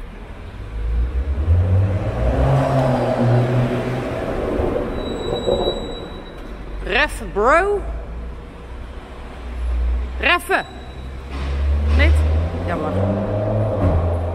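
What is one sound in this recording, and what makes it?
A car engine rumbles and echoes in a large enclosed space.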